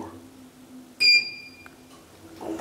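An elevator button beeps briefly.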